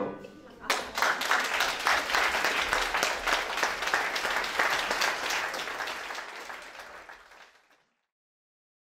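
A crowd applauds in a room, clapping briskly and then fading out.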